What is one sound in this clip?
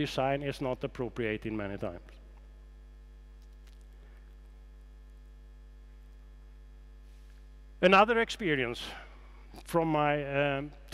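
A middle-aged man speaks calmly through a headset microphone, pausing between phrases.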